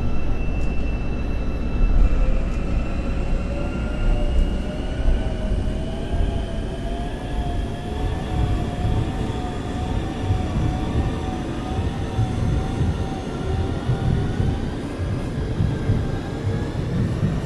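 A train rumbles low and steady from inside a carriage.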